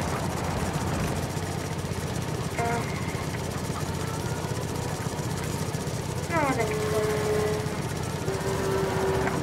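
A lawn mower engine runs with a steady low rattling drone.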